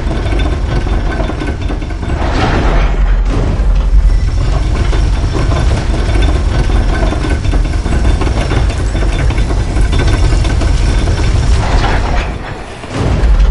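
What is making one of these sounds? A heavy stone lift rumbles and grinds as it rises.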